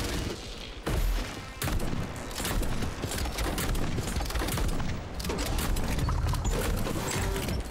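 Gunfire bursts in rapid shots.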